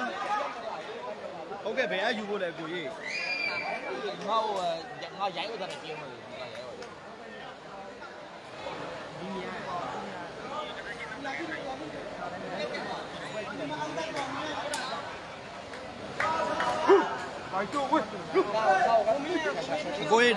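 A large crowd chatters and shouts loudly.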